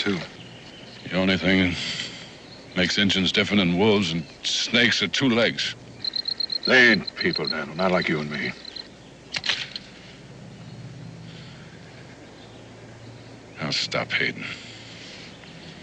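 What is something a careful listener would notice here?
An older man answers in a low, gruff voice.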